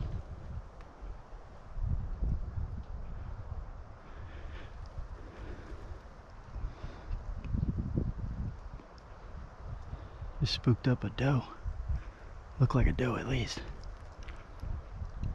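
Footsteps swish and crunch through dry grass.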